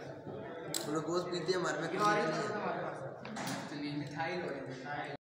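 A teenage boy speaks with animation nearby.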